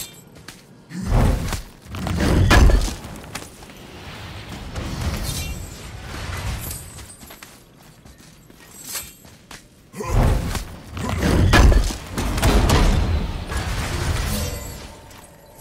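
A heavy stone lid breaks open with a deep, rumbling crash.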